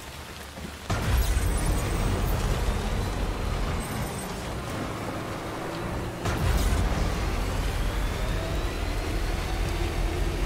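A truck engine rumbles and roars as it drives.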